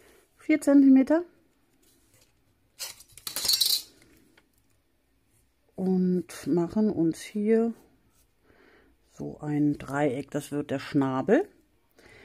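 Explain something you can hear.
A pencil scratches across paper.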